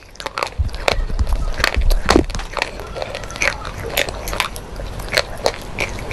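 Wet mouth sounds smack close to a microphone.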